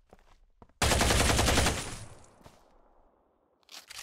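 A gun fires a rapid burst of shots that echoes away.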